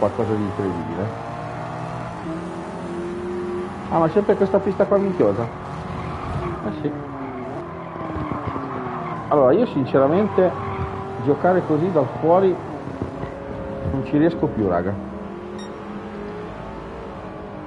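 Racing car engines whine and rev, rising and falling as gears change.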